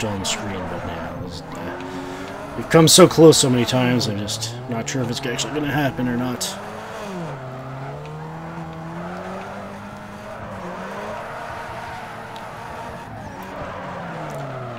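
Tyres squeal as a car drifts around bends.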